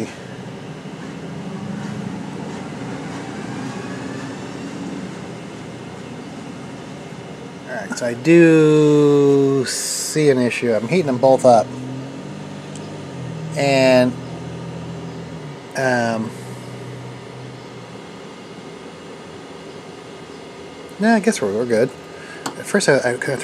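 A machine's fan hums steadily.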